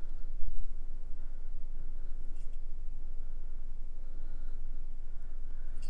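Small plastic parts click and scrape softly between fingers.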